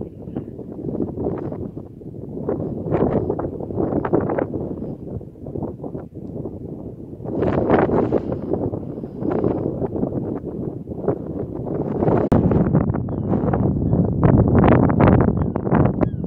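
Strong wind gusts and buffets the microphone outdoors.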